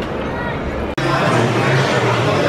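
People chat and murmur in a busy room.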